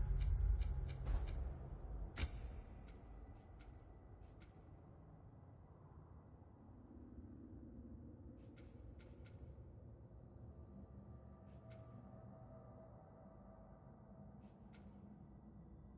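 Short menu clicks and ticks sound as a selection moves from item to item.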